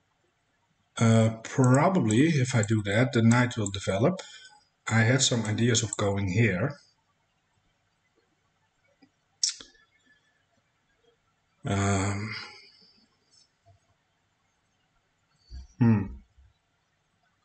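A man speaks calmly and close into a microphone, in short bursts with pauses.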